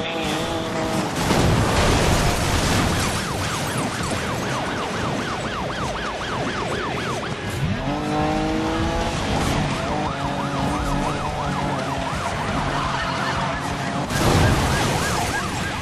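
A car crashes with a loud metal impact.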